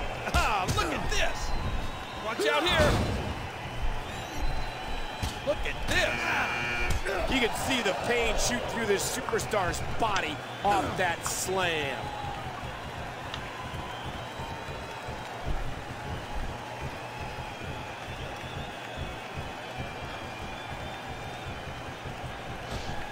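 Heavy blows and body slams thud on a wrestling ring.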